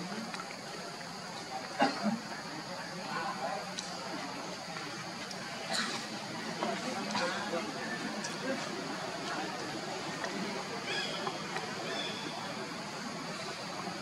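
A baby monkey's small feet patter and rustle over dry leaves and dirt.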